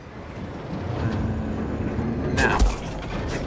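A heavy machine hums as a lift lowers.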